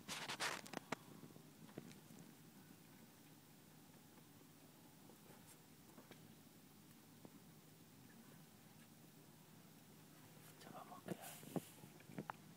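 A rabbit licks and nibbles at another rabbit's fur with soft rustling.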